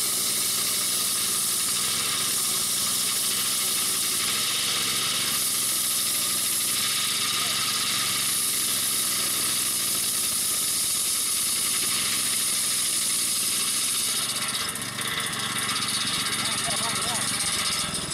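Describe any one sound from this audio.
A small engine runs loudly and steadily.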